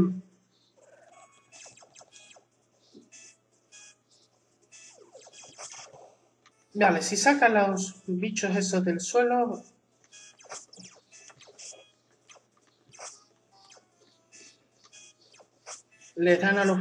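Video game sound effects blip and chirp softly.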